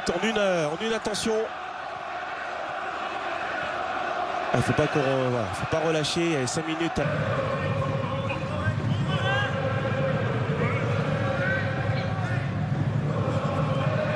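A stadium crowd murmurs and cheers in the distance.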